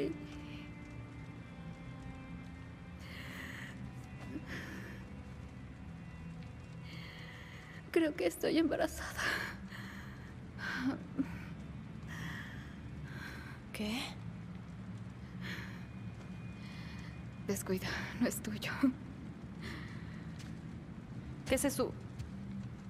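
A young woman asks a quiet, halting question.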